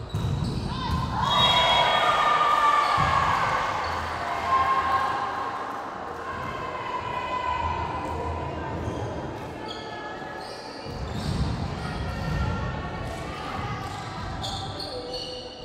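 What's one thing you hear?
Spectators cheer and shout with excitement.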